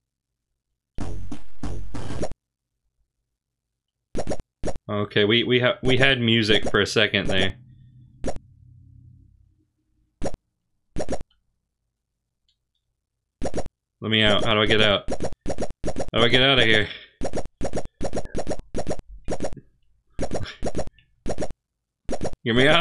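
Short electronic game beeps sound as menu options change.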